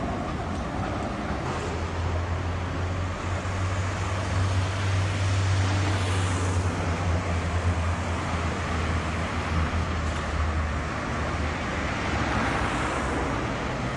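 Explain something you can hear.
City traffic rumbles and hisses nearby.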